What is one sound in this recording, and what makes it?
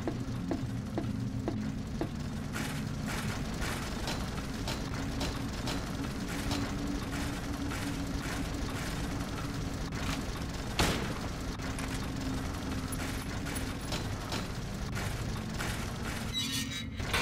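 Footsteps clank steadily on a metal grating.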